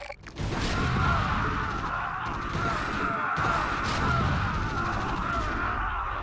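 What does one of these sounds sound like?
Explosions boom in a battle.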